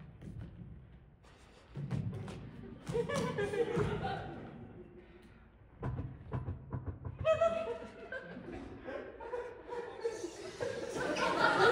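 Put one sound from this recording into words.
A dancer's feet thud and slide softly on a stage floor.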